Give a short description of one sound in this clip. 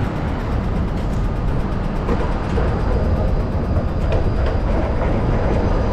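A tram rolls past at a distance.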